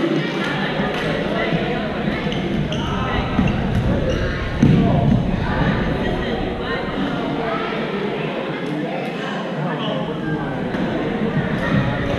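Many people chatter and call out across a large echoing hall.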